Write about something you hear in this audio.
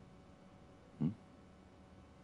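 A young man grunts briefly in a questioning way.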